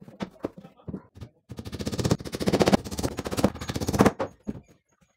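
A hammer taps rapidly on wood.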